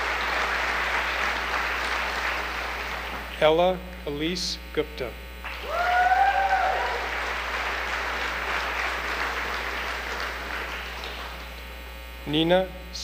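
An audience claps steadily in a large hall.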